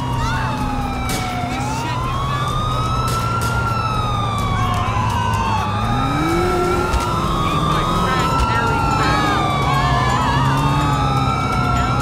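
Police sirens wail close by, rising and falling.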